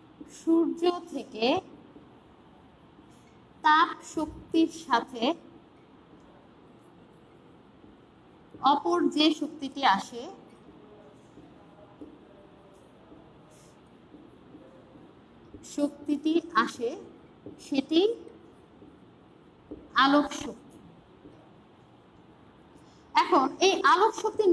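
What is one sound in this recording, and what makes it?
A woman speaks in short phrases with pauses, close by.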